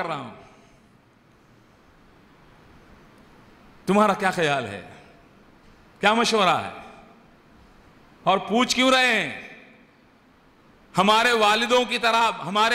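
An elderly man speaks into a microphone with animation, in short bursts with pauses.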